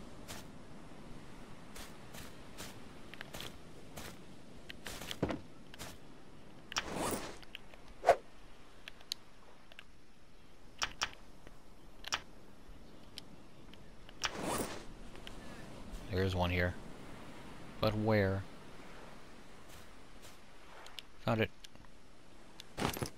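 Footsteps rustle through dense grass and leaves.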